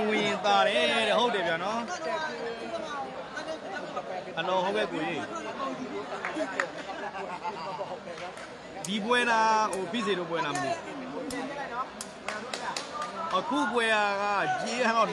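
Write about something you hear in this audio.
A large crowd chatters and cheers loudly in an echoing hall.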